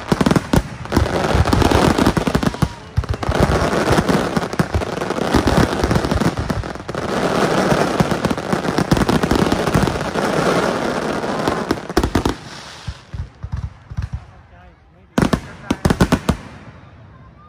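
Fireworks crackle and pop loudly in rapid bursts.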